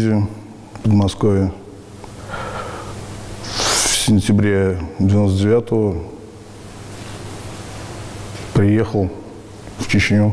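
A middle-aged man speaks calmly and close by, in short phrases with pauses.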